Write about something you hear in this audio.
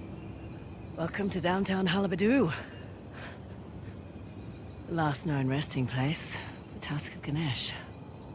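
A young woman speaks calmly and nearby.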